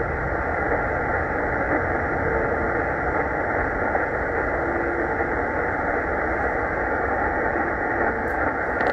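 A shortwave radio hisses with steady static from its loudspeaker.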